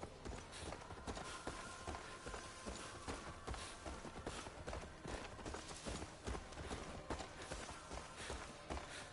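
Footsteps crunch steadily along a dirt path.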